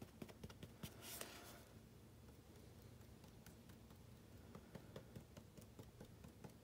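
Light foam board creaks and taps in a man's hands.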